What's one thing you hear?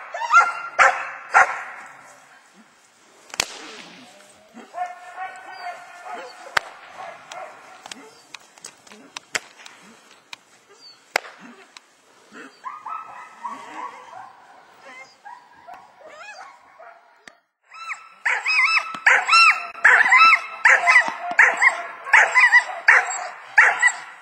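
A dog barks loudly and rapidly.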